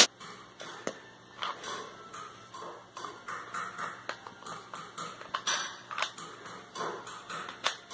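A plastic magazine clicks as it slides out of a toy pistol and back in.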